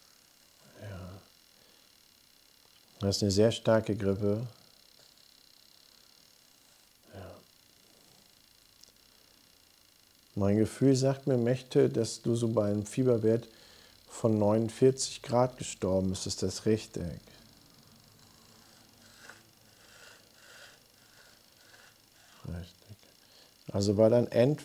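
A middle-aged man speaks calmly into a close microphone, in bursts with pauses.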